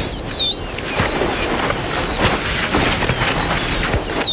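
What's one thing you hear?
Claws scrape on tree bark as a leopard climbs down.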